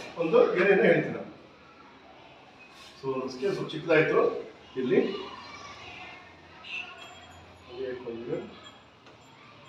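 A man speaks calmly nearby in a slightly echoing room.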